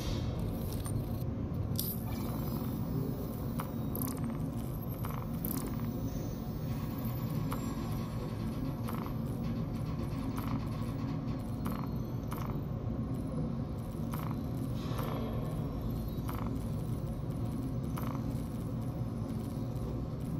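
Soft electronic blips sound as menus open and options are clicked.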